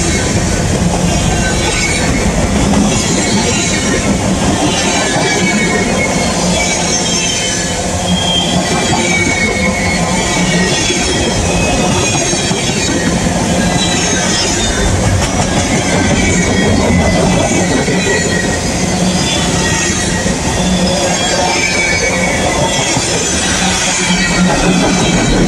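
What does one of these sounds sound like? Steel wheels squeal and screech against the rails.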